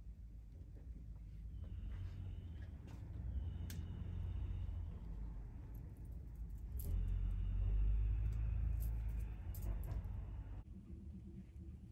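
Hands rustle softly against hair and a cap.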